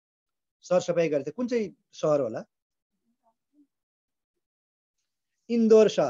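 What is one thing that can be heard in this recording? A middle-aged man speaks calmly and close to the microphone, in short phrases with pauses.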